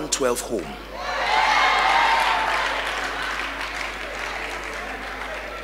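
A large crowd cheers and roars.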